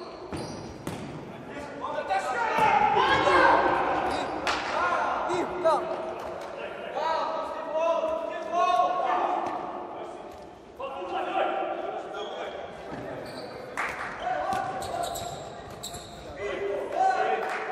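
A ball is kicked and bounces on a hard court.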